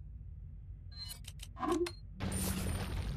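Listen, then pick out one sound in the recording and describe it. Menu selection clicks blip briefly.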